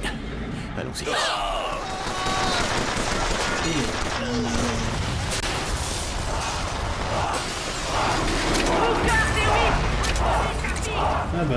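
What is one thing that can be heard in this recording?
Gunfire crackles and bangs in a noisy fight.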